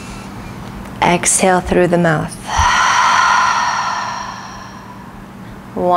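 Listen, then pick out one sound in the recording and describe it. A woman speaks calmly and softly close to a microphone.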